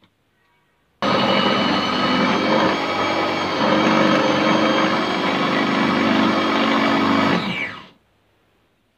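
A food chopper whirs steadily, then winds down.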